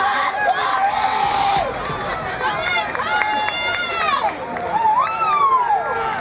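A small crowd of men and women shout and cheer from a distance outdoors.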